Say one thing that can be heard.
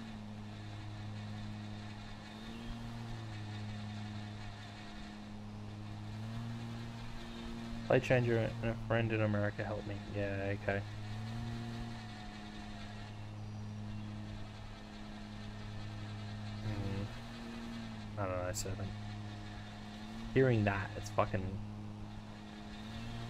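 A lawn mower engine hums steadily, rising and falling slightly in pitch.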